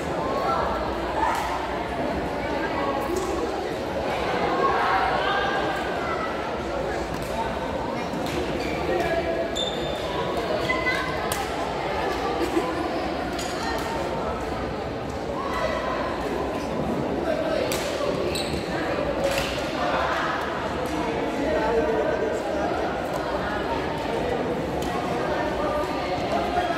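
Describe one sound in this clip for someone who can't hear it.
Shoes squeak on a sports court floor.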